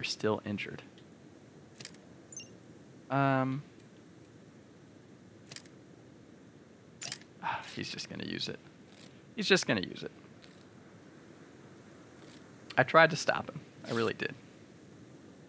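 A young man talks casually, close to a microphone.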